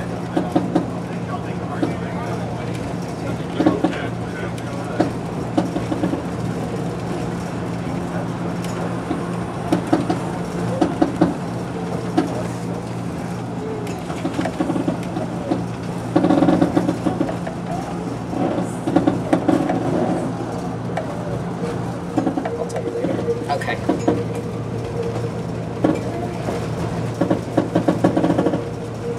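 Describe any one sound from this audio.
A diesel railcar engine drones under way.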